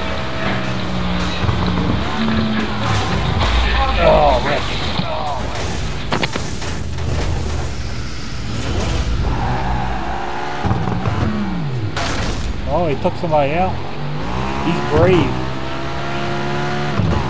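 A racing car engine roars and revs at high speed.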